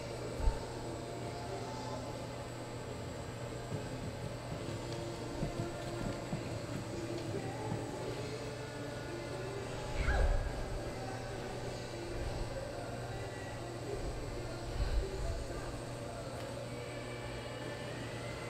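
A horse's hooves thud softly on dirt.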